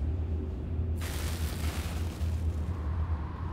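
A magical blast crackles and whooshes.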